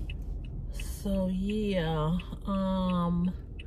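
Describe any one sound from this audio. A woman sings loudly, holding long notes close by.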